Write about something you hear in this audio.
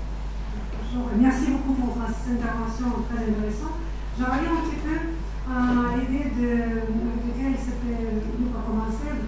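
A man speaks calmly through a loudspeaker in a large echoing room.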